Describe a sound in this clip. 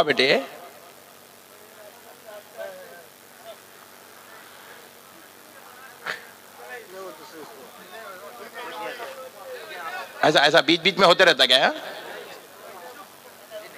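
An elderly man speaks through a loudspeaker microphone, rising to loud, impassioned chanting.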